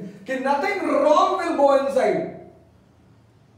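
A man speaks with animation, close by, through a microphone.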